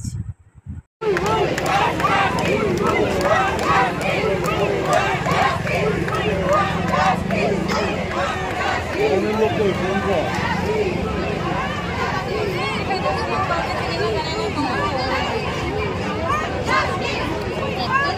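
A large crowd outdoors chatters and shouts in a loud, dense roar.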